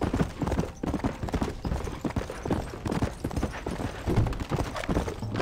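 A horse gallops with fast, heavy hoofbeats.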